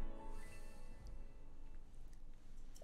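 A bright musical chime rings out and fades.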